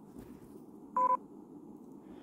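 A short electronic chime sounds as a chat opens.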